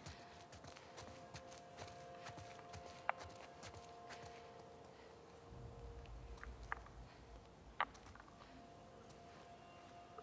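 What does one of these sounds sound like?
Footsteps rustle softly through undergrowth.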